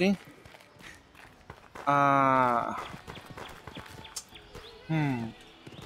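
Footsteps with clinking armour walk across stone.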